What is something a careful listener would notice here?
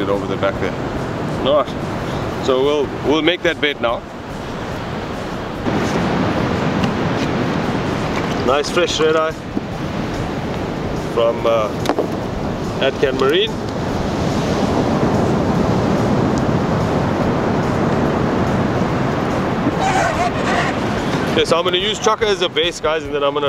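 A man talks calmly, close by, outdoors in wind.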